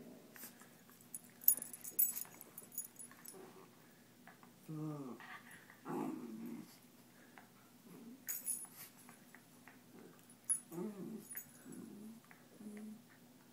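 Two small dogs growl and yip as they play-fight.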